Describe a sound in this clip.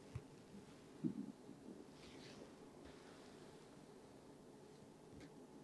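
A small handheld device hums softly close by.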